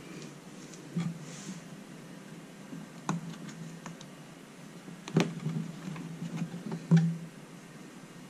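Metal racks clatter and scrape inside a small oven.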